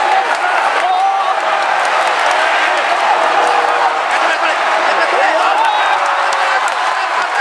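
A large crowd cheers and roars loudly in an open stadium.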